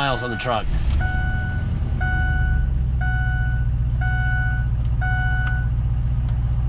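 A vehicle's warning chime beeps in an even rhythm.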